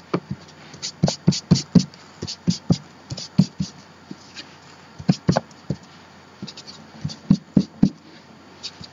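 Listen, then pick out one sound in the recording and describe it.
An ink pad taps repeatedly on paper.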